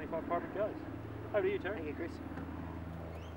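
A man speaks calmly outdoors, close by.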